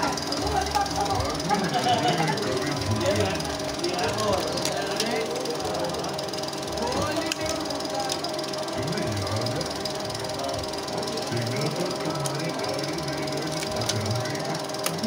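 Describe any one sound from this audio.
Metal parts of a film projector click and clack as hands thread it.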